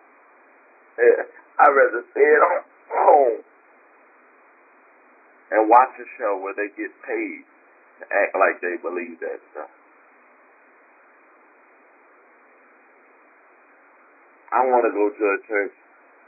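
A woman speaks slowly into a microphone, pausing between phrases.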